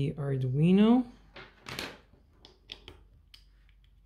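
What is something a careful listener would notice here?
A plug clicks into a socket.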